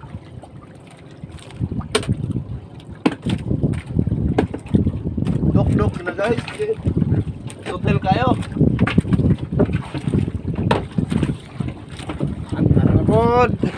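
Waves lap against a small wooden boat.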